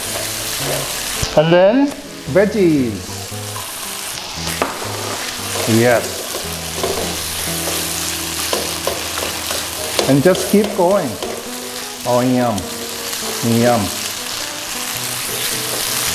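A spatula scrapes and stirs in a metal pan.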